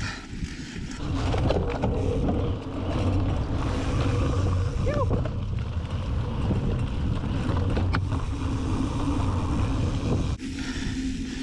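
Wind rumbles loudly across a close microphone.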